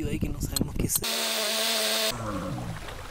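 A small rotary tool whines steadily.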